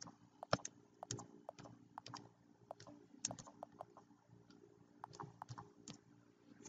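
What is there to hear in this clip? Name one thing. Fingers tap quickly on a touchscreen keyboard.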